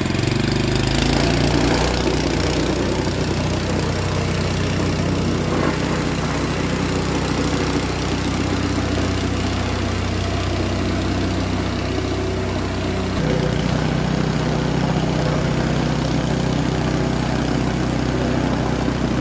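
A plate compactor rattles over paving stones.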